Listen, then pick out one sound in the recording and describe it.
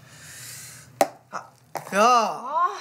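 Chopsticks clink against a metal pot.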